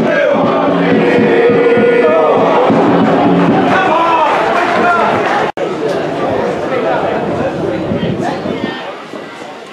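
A crowd cheers and chants loudly outdoors.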